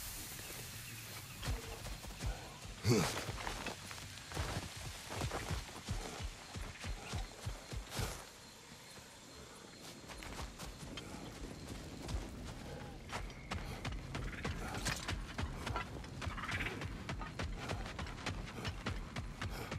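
Heavy footsteps crunch on the ground.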